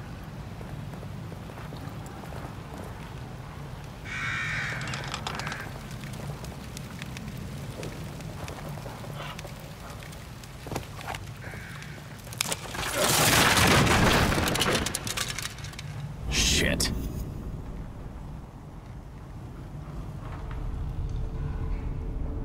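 Footsteps crunch slowly over stone and dirt.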